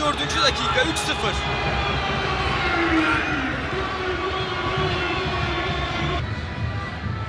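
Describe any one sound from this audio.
A large crowd cheers and whistles loudly in a stadium.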